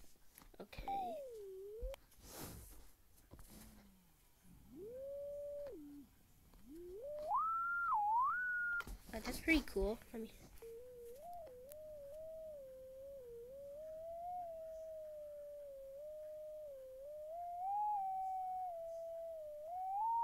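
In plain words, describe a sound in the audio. A young man whistles a wavering tune close by.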